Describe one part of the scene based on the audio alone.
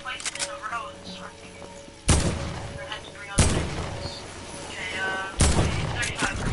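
Gunshots fire in a video game.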